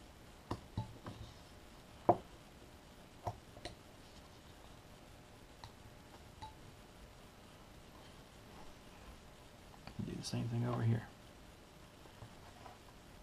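A knife blade scrapes and clicks against wood as it carves.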